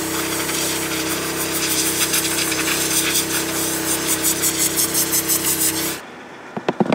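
An air filter thumps repeatedly against the ground.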